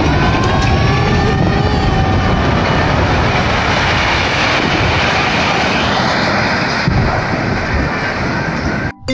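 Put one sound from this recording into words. A tall tower collapses with a deep, roaring rumble.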